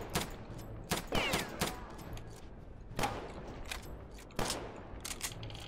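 Single gunshots crack sharply at uneven intervals.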